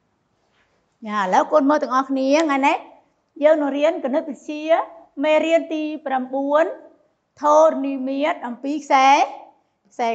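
A middle-aged woman speaks clearly and with animation into a clip-on microphone, close by.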